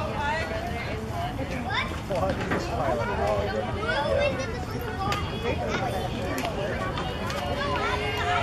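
Young girls cheer and call out loudly nearby.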